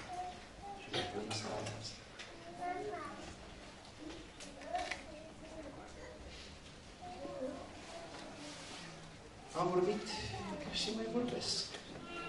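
A middle-aged man speaks calmly into a microphone in a room with a slight echo.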